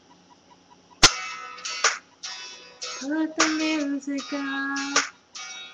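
A young woman sings out loudly, close by.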